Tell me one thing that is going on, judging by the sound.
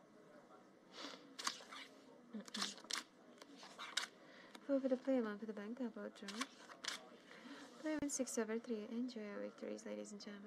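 Playing cards slide and snap on a felt table.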